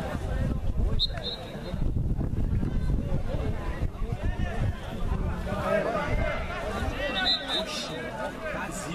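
A referee blows a whistle in short blasts outdoors.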